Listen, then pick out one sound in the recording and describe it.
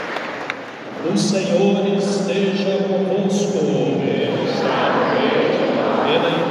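A crowd of people sings together in a big echoing hall.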